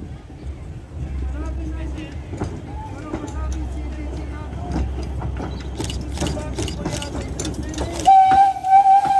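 A steam locomotive rumbles as it approaches.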